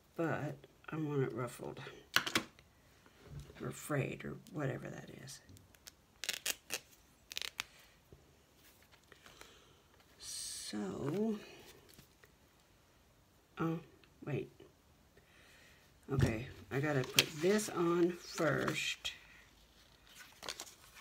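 Paper rustles and taps as hands handle it.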